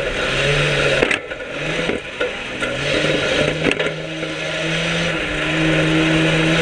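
A racing car engine roars loudly up close, revving up and down.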